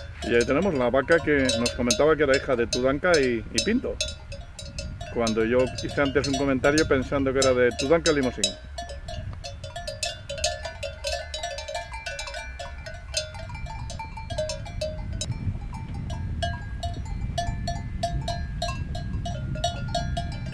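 A cowbell clanks as a grazing cow moves its head.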